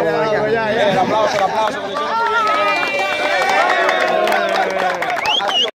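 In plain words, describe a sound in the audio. Young men chatter and shout excitedly close by, outdoors.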